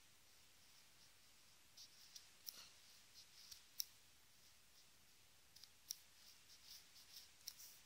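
Small plastic doll limbs click softly as they are moved.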